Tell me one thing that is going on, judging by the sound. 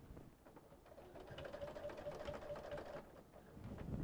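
A sewing machine hums and stitches steadily.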